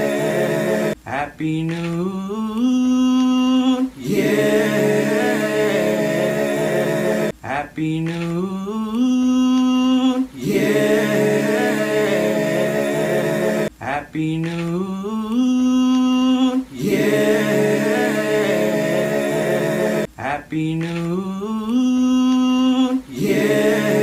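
A young man sings alone with a rising melody, close to a phone microphone.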